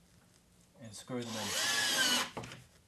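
A cordless drill whirs in a short burst.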